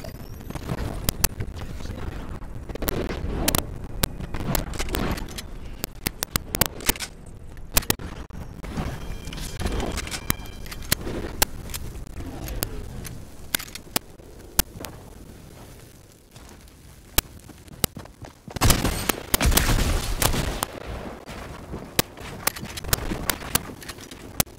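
Gunshots crack in sharp, scattered bursts.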